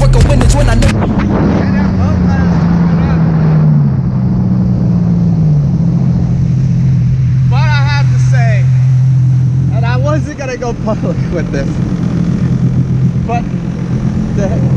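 A jet ski engine drones loudly and steadily, easing off near the end.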